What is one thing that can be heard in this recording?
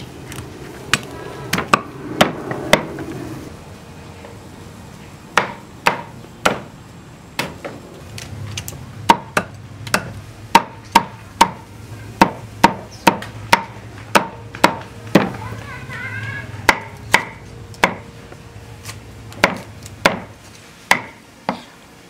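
A cleaver chops meat on a wooden board with sharp knocks.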